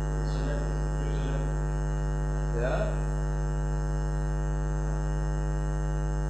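A projector hums steadily.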